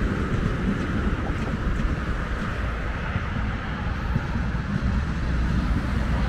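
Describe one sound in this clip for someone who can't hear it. Traffic hums on a nearby road.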